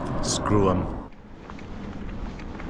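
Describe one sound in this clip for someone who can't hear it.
Wind rushes past as a bicycle rolls along a road.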